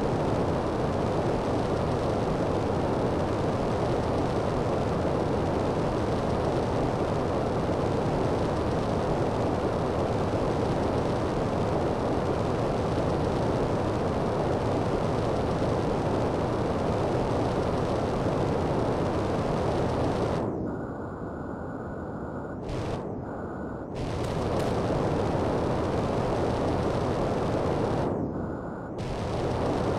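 A jetpack roars steadily with a rushing hiss.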